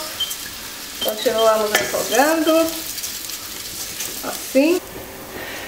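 A wooden spoon scrapes and stirs rice in a pan.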